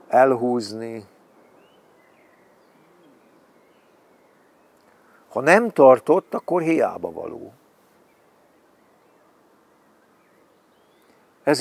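An elderly man speaks calmly and close by, in short bursts.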